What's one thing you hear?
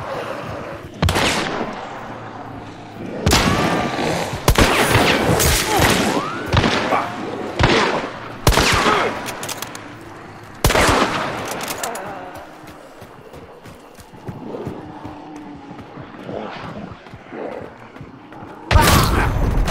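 Gunshots boom loudly and echo, several times.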